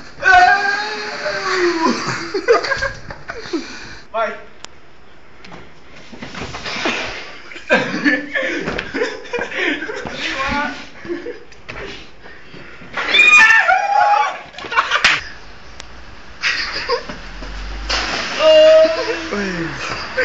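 Sneakers scuff and thump on a tiled floor.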